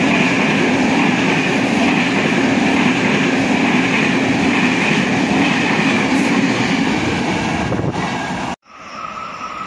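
A passenger train rushes past close by, its wheels roaring on the rails.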